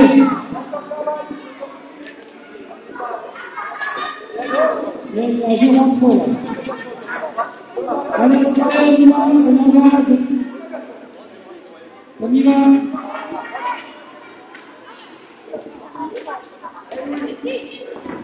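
A ball thuds as children kick it.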